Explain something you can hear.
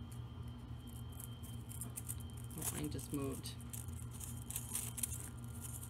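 Wire rustles and scrapes as hands twist it around small ornaments.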